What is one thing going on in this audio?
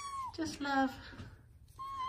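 A cat meows close by.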